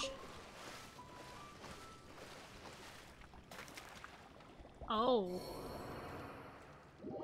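Water splashes as a swimmer strokes through it.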